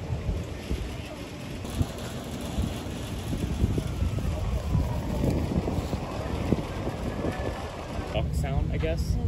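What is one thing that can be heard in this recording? Wind blows across the microphone outdoors.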